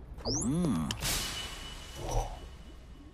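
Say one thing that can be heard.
A game's card pops up with a whooshing sound.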